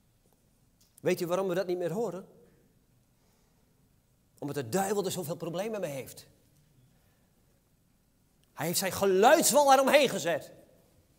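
An elderly man speaks through a microphone with emphasis, in short bursts with pauses, in a large reverberant hall.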